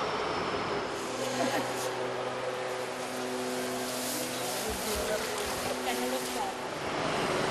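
A forklift engine hums steadily.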